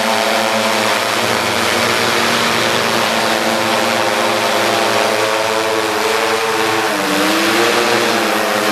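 A drone's rotors buzz loudly overhead, the pitch shifting as it moves.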